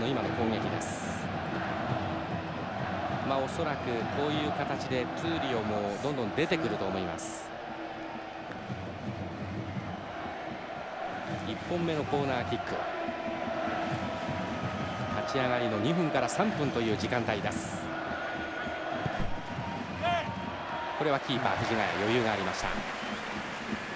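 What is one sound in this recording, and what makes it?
A large stadium crowd cheers and chants throughout.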